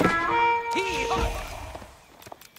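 A bright electronic alert chime rings out.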